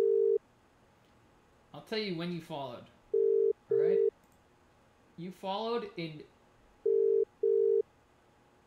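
A phone beeps in short, steady tones.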